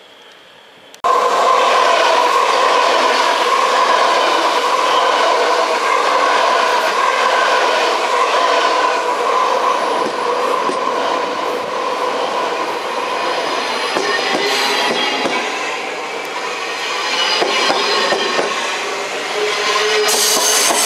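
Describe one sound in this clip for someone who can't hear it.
A train rolls slowly past close by, its wheels squealing and rumbling.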